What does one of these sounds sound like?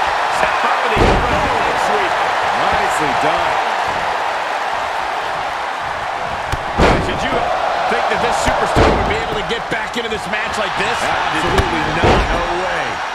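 Heavy bodies slam down onto a wrestling ring with loud thuds.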